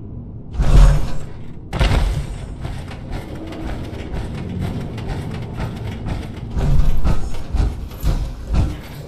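Heavy metal footsteps clank and thud at a steady walking pace.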